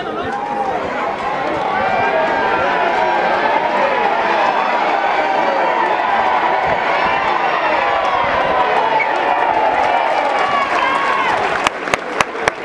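Men shout and call out loudly outdoors.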